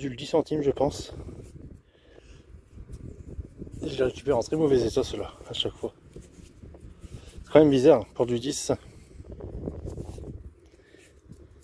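A thumb rubs dirt off a small metal coin.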